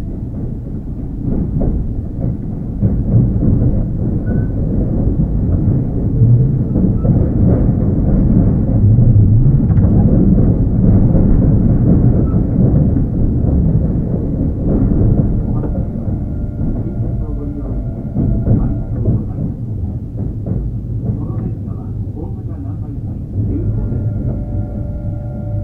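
A stopped electric train hums steadily nearby.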